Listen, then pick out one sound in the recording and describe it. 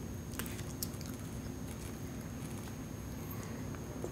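A young girl sips a drink through a straw.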